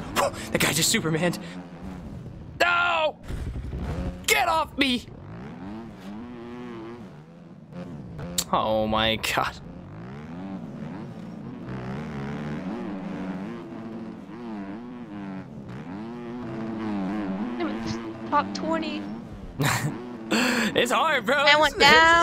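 A dirt bike engine revs and whines as the bike races.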